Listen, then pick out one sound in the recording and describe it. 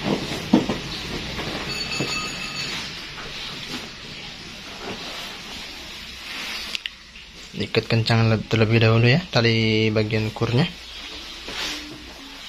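Hands rustle and tug at a stiff padded seat cover.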